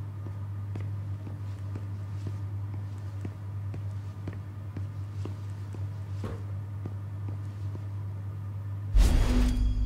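Footsteps tap on a hard tiled floor at a steady walking pace.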